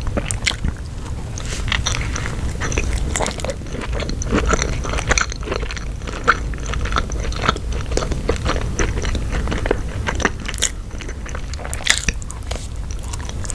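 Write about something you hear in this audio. A young woman bites into crisp bread with a crunch.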